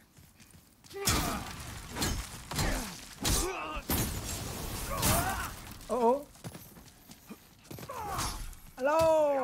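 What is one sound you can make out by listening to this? Swords clash and strike with heavy impacts.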